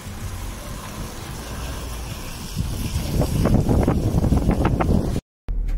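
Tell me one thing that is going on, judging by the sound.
A car drives slowly along a road with a low rumble.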